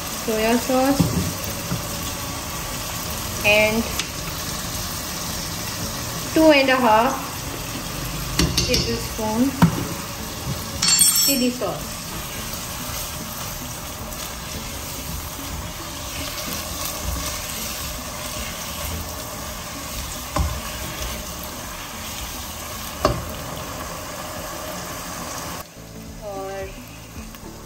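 A wooden spoon stirs and scrapes inside a metal pot.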